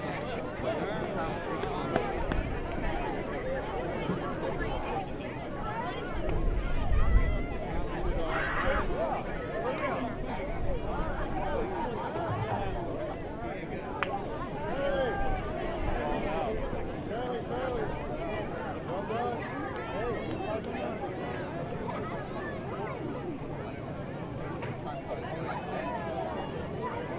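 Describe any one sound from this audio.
A large crowd of children and adults chatters and shouts outdoors.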